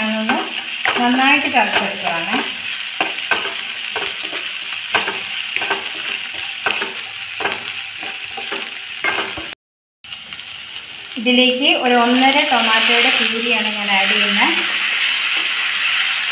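A spatula scrapes and clatters against a frying pan.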